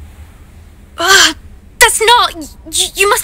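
A young woman speaks with surprise and agitation.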